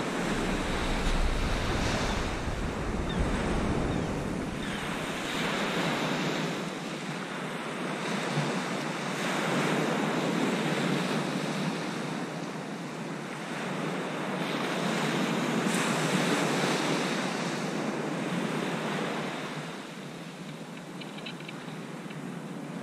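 Small waves break and wash onto a sandy beach.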